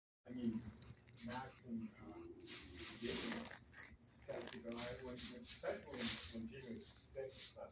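A dog pants rapidly close by.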